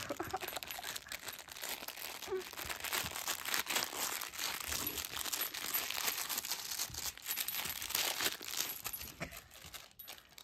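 A dog tugs and chews on a plush toy.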